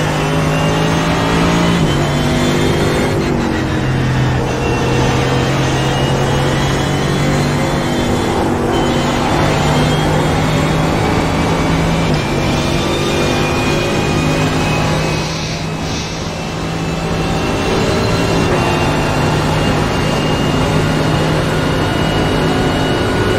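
A race car engine roars steadily at high revs, shifting up through the gears.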